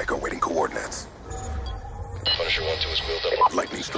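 An electronic handheld device hums and beeps.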